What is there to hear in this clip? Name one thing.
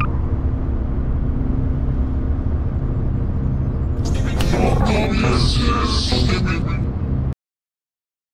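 A heavy, loud rumble drones and roars, then cuts off suddenly.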